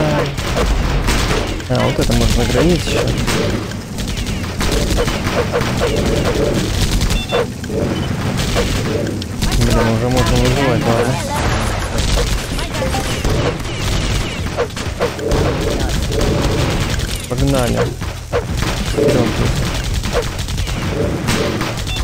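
Gunfire crackles in quick bursts.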